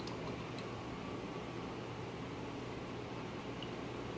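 Liquid trickles into a plastic jug.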